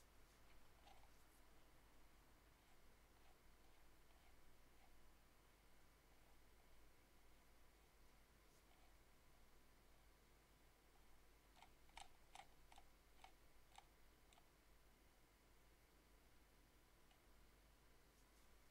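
Soft electronic menu blips sound as a selection moves.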